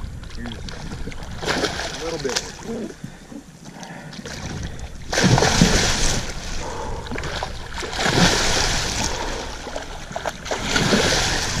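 A large fish thrashes and splashes loudly in the water beside a boat.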